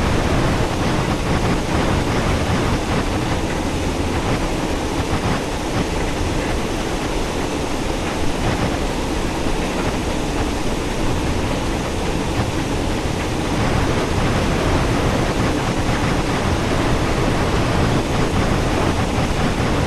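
A steam locomotive rumbles and clatters steadily along the track.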